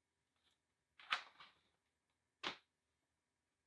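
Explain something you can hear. A cardboard box is set down with a thump.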